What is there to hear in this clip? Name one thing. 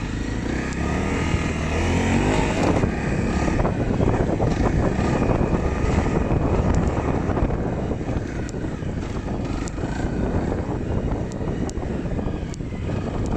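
Wind buffets loudly against a moving rider.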